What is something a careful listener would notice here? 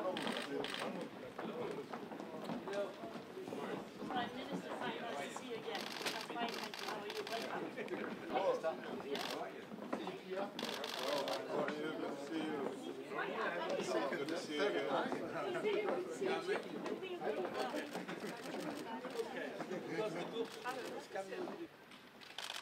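A crowd of men and women chat at once.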